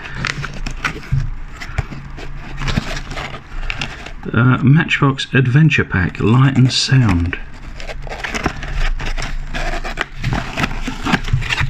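A cardboard box scrapes and rustles in the hands.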